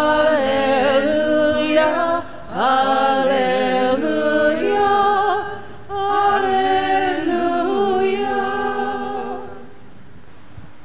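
An elderly man sings slowly into a microphone in an echoing room.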